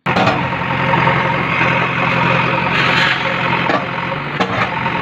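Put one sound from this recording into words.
A digger engine rumbles steadily.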